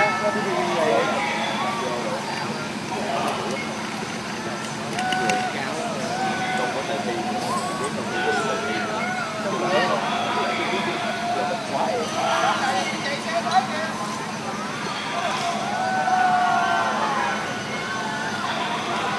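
A fire truck engine rumbles steadily.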